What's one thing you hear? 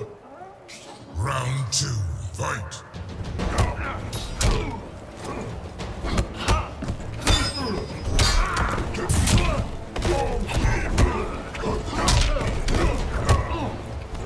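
Heavy punches and kicks thud and smack in quick bursts.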